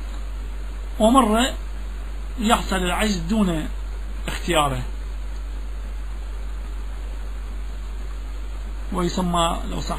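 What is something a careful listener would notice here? A man chants in short, melodic phrases with long pauses between them.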